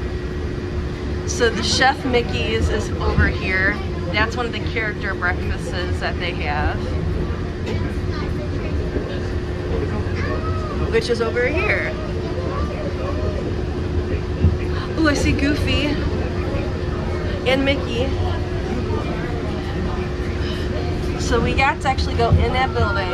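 A train hums steadily as it rolls along.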